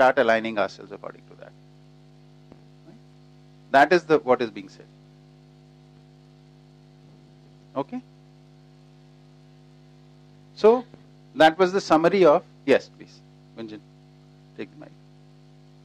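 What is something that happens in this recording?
A middle-aged man speaks in bursts through a microphone.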